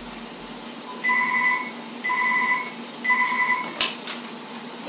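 A telephone rings three times nearby.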